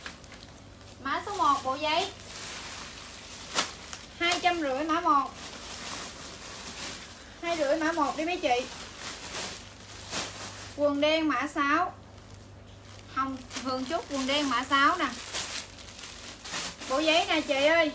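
A young woman speaks up close in short, lively bursts.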